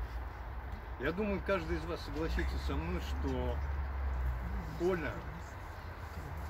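An elderly man speaks calmly outdoors, a little distance away.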